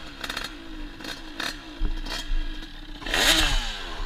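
A motorcycle crashes and scrapes onto the road.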